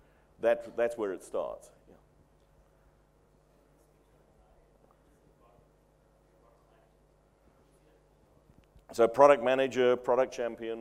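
An elderly man speaks calmly into a microphone, pausing between phrases.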